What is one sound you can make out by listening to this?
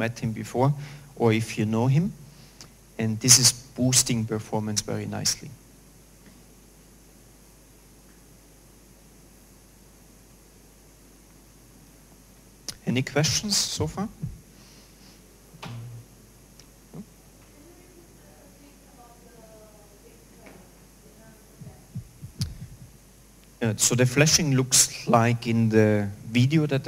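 A man lectures through a microphone, with pauses.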